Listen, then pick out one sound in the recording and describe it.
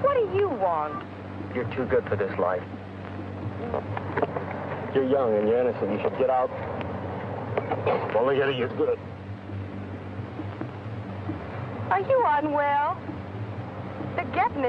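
A young woman speaks, close by.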